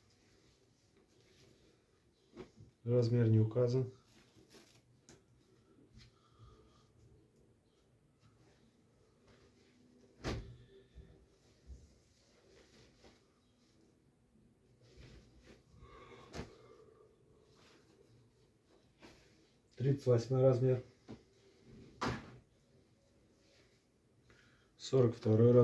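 Cloth rustles softly as clothes are handled and folded.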